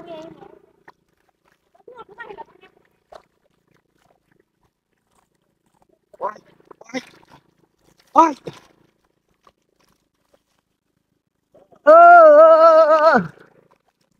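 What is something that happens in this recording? A hand squelches and splashes in wet mud.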